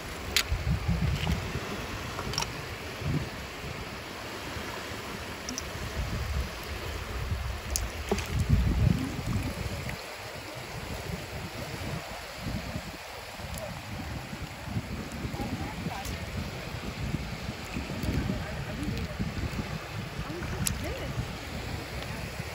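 Wind buffets outdoors in low gusts.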